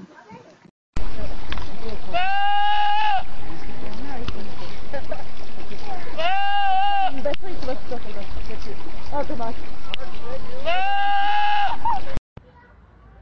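A goat bleats repeatedly outdoors over a steady rushing noise.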